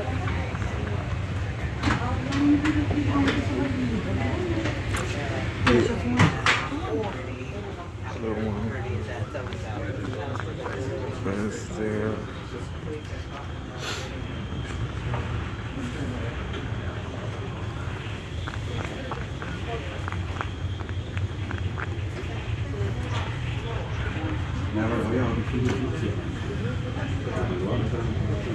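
A ferry engine rumbles steadily.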